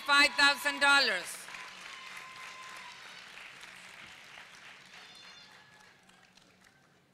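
A crowd applauds in a large hall and the clapping slowly fades.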